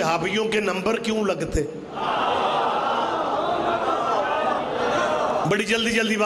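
A middle-aged man speaks with passion through a loudspeaker, his voice echoing.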